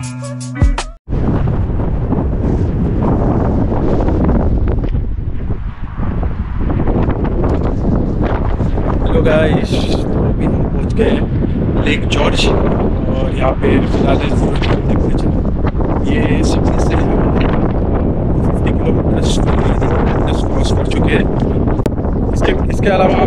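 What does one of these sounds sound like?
Strong wind buffets a microphone outdoors.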